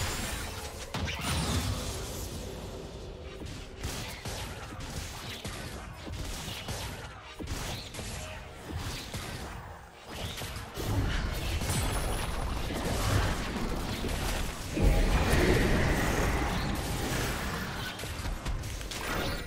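Blades and blows strike with sharp hits.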